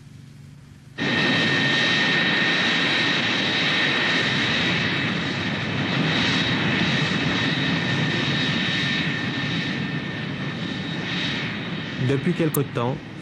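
A jet airliner's engines whine loudly.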